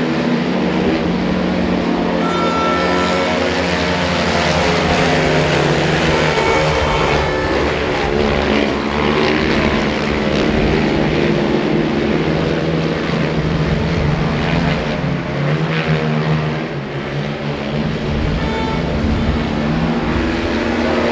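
Quad bike engines roar and whine loudly as they race around a track.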